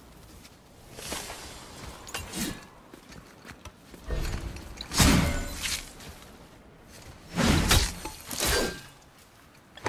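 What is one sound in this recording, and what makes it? An axe hacks heavily into something thick with loud, wet thuds.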